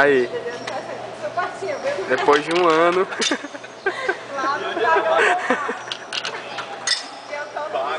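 Coins clink as they drop into a vending machine.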